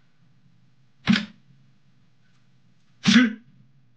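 A game piece clicks sharply as it is placed.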